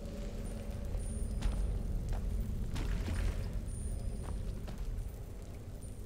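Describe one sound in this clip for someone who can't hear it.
A magic flame crackles and hums in a hand.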